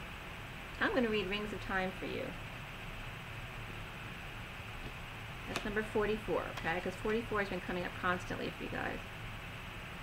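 A woman speaks calmly and close by, heard through a microphone.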